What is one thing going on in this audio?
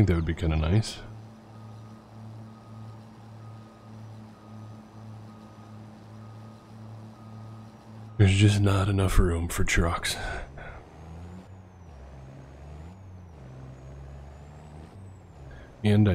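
A truck engine idles with a low steady hum.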